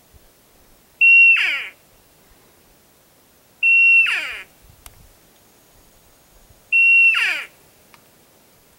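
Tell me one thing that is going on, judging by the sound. A bull elk bugles loudly, a high shrill whistle that slides down into low grunts.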